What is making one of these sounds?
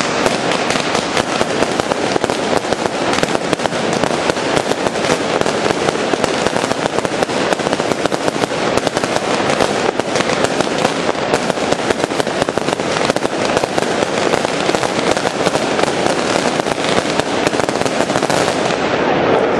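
Fireworks crackle and bang rapidly overhead.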